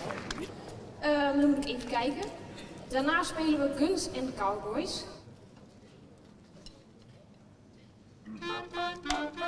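A young woman speaks calmly into a microphone over loudspeakers.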